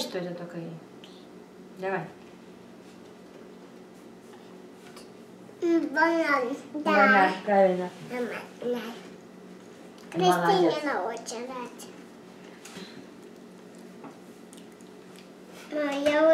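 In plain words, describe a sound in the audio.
A young girl talks excitedly, close by.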